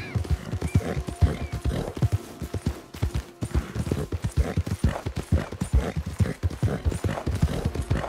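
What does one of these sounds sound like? Horse hooves thud rapidly on a dirt trail.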